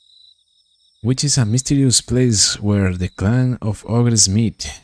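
A young man speaks with animation into a close microphone.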